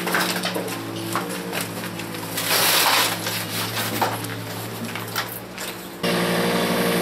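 A wheelbarrow rattles and clatters up a metal ramp.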